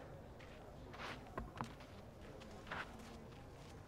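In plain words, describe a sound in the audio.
A tennis ball bounces on a clay court a few times.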